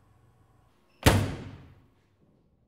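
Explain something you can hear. A washing machine door slams shut with a loud bang.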